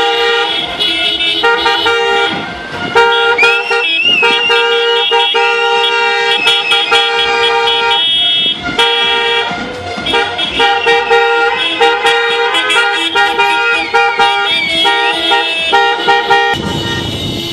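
Car horns honk loudly and continuously.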